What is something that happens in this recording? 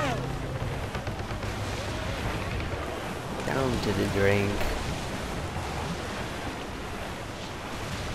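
Waves crash and splash against a ship's hull.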